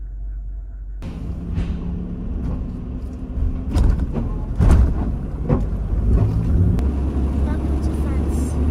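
A car engine hums.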